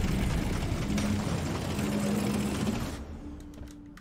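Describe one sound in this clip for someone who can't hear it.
Power drills grind loudly through rock.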